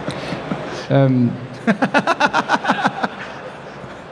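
A young man laughs into a microphone.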